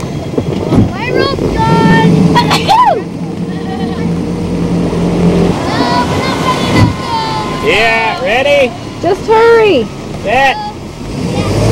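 A young woman shouts loudly across the water.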